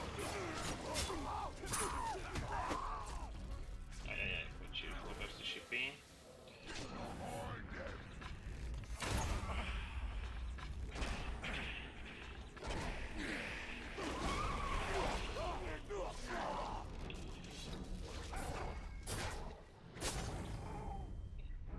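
Creatures grunt and shriek as they are struck.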